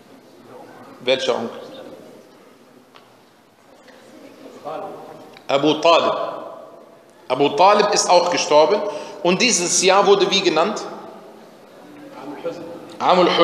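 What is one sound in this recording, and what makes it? A man recites in a slow, melodic voice close to a microphone.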